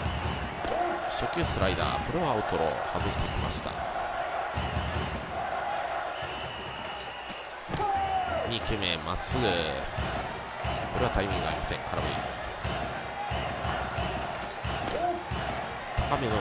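A baseball smacks into a catcher's mitt several times.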